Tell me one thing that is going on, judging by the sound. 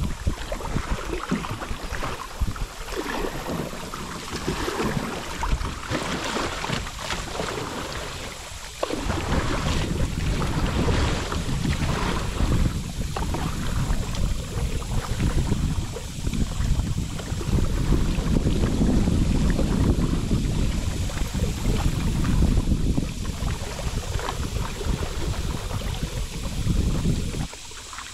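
A paddle dips and splashes rhythmically in river water.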